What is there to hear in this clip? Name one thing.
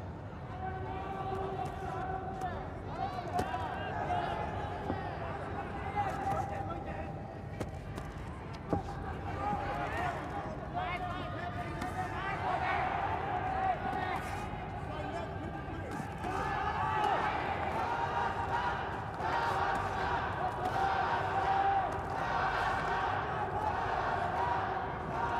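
Boxing gloves thud against bodies in quick punches.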